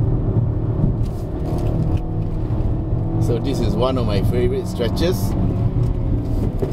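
A car engine hums steadily with road noise inside the cabin.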